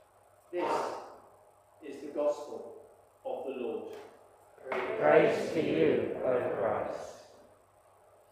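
An elderly man reads out calmly through a microphone.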